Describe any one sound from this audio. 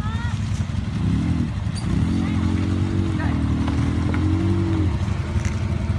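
A quad bike engine revs up and down.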